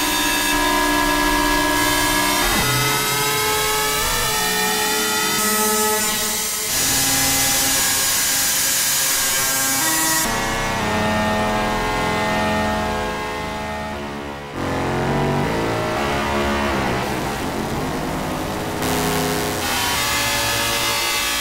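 Synthesizer notes sound from a keyboard in short melodic phrases.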